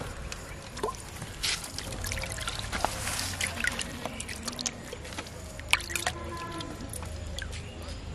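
Water splashes and sloshes in a tub as a hand stirs it.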